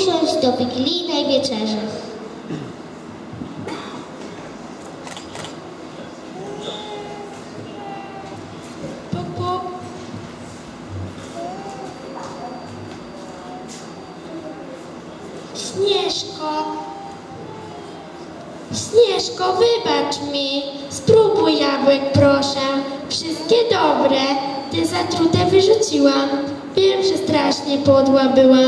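An accordion plays a tune.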